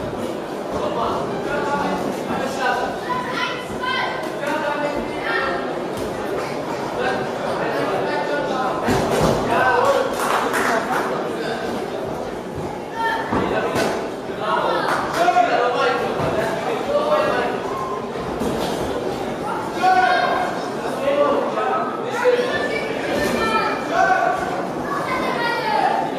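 Spectators shout and call out in an echoing hall.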